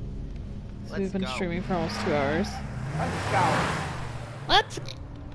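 A car engine roars as a car speeds along a street.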